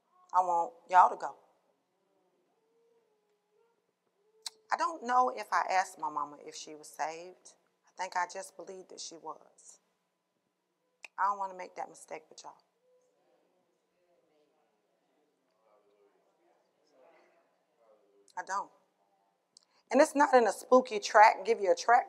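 A woman speaks with animation into a microphone, with pauses.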